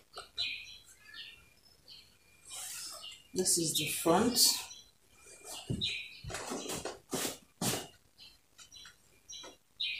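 Fabric rustles and swishes as it is handled.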